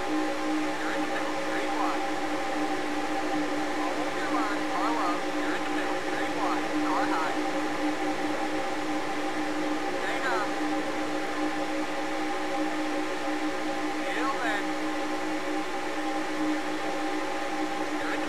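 A racing engine drones steadily at high revs.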